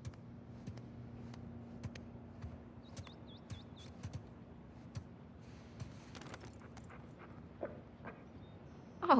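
Footsteps tap on a hard floor indoors.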